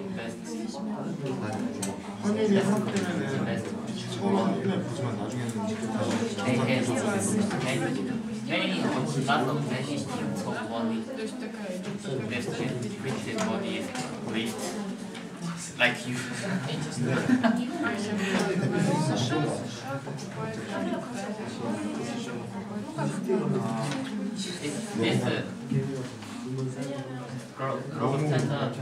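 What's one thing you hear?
A young man lectures steadily into a microphone in a room with some echo.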